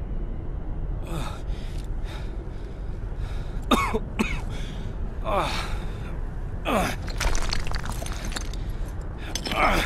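A man speaks weakly and breathlessly, close by.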